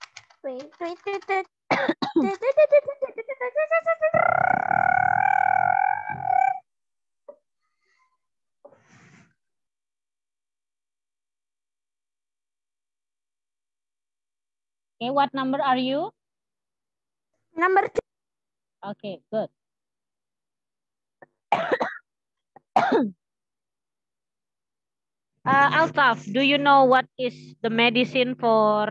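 A woman speaks over an online call, in a teacher's clear voice.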